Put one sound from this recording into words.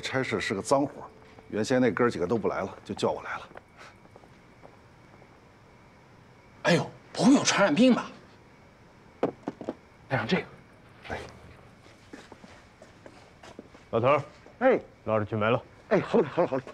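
A second man talks with animation nearby.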